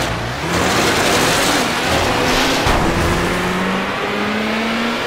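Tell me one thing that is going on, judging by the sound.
A racing car engine roars and rises in pitch as it speeds up.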